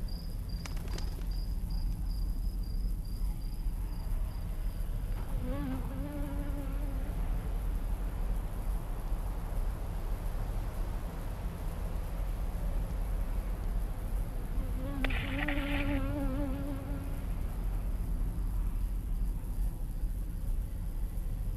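Wind blows steadily through trees outdoors.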